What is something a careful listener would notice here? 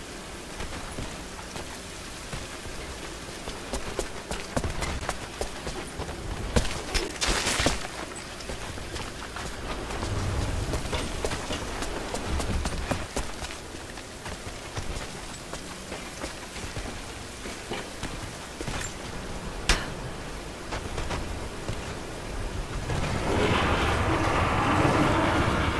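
Footsteps crunch on icy stone.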